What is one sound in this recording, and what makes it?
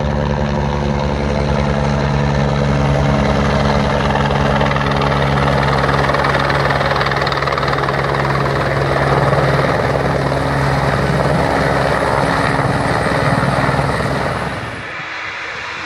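A helicopter's rotor thumps loudly as it flies close by.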